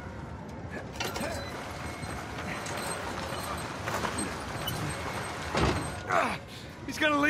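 A heavy wheeled cart rumbles and scrapes as it is pushed.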